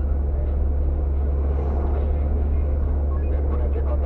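A heavy truck passes in the opposite direction.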